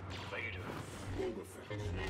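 Blaster shots crack and ricochet.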